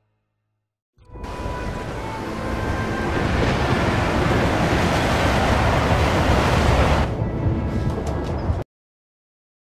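A train rumbles loudly along the tracks.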